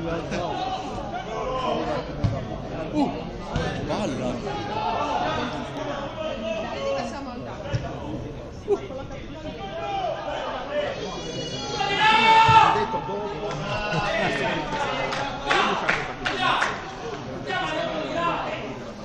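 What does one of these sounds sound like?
Players shout and call out across an outdoor pitch.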